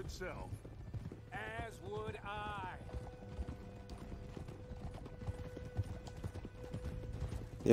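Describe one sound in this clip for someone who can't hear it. Horse hooves clop steadily over stony ground.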